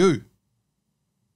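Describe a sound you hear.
A man briefly speaks close into a microphone.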